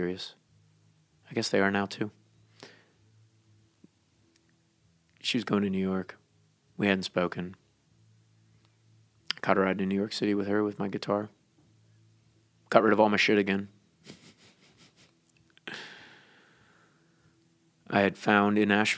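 A man speaks slowly and with emphasis through a microphone, in short phrases with pauses.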